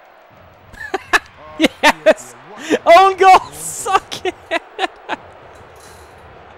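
A young man laughs loudly and cheers.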